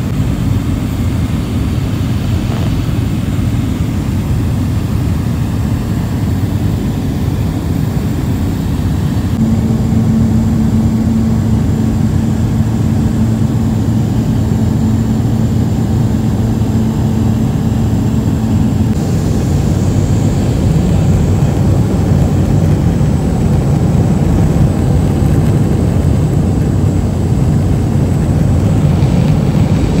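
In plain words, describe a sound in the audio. A light propeller aircraft's engine drones, heard from inside the cabin.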